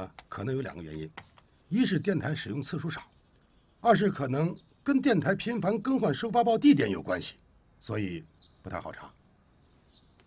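A second man answers calmly and close by.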